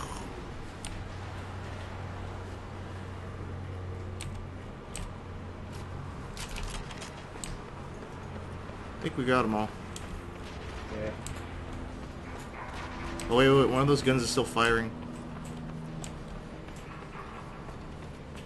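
Footsteps tread on a hard walkway at a steady walking pace.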